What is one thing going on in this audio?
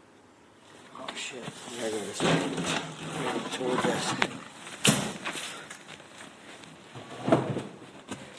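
A man talks casually and close up, heard through a phone's microphone.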